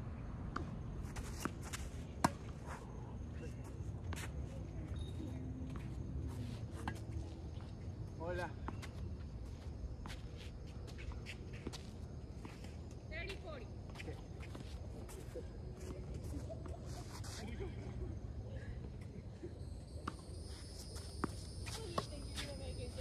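A tennis ball pops off rackets in a rally outdoors.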